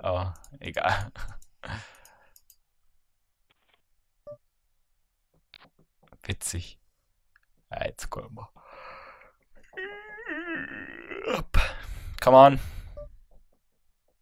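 A young man talks casually into a microphone, close by, in short bursts.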